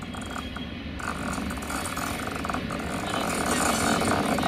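Locomotive wheels clatter and squeal on the rails.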